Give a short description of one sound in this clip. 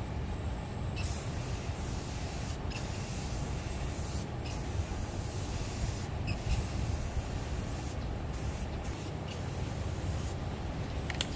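Water hisses from a spray nozzle in short bursts.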